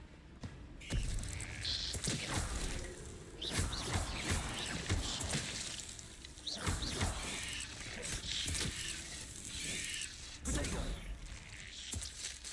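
Spells crackle and blast in a game fight.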